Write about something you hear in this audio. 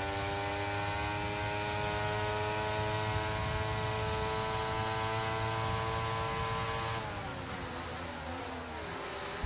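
A racing car engine screams at a high, steady pitch, then drops and wavers.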